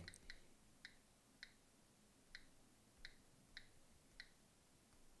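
Fingertips tap lightly on a touchscreen.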